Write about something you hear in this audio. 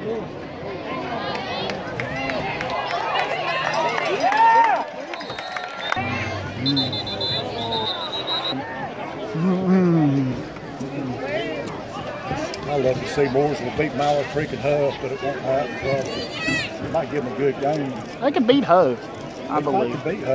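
A crowd of people chatters and shouts outdoors.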